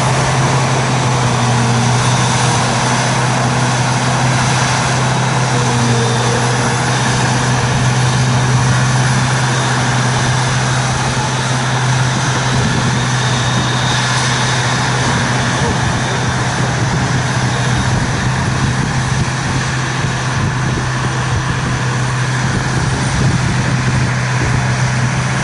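Chopped crop rushes and hisses through a harvester's spout into a trailer.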